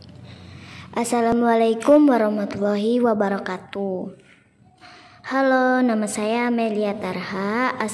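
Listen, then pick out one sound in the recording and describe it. A young woman sings a slow, wavering melody.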